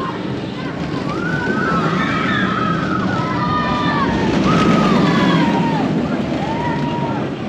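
Riders scream with excitement from a passing coaster train.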